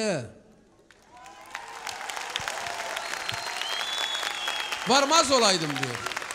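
A large crowd applauds and cheers.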